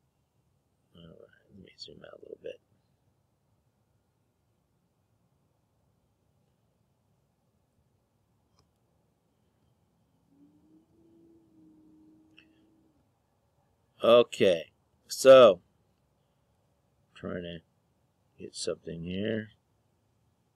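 A middle-aged man speaks calmly into a microphone, heard close up.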